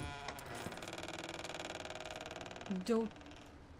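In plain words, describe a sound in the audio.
A door creaks slowly open.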